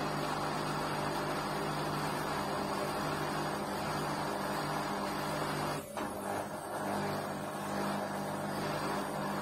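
A washing machine hums and whirs steadily as its drum spins.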